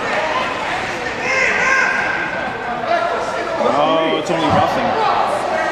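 A crowd of spectators chatters and shouts in a large echoing arena.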